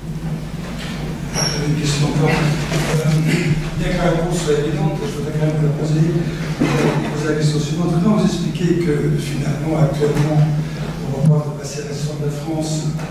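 A younger man speaks calmly into a microphone.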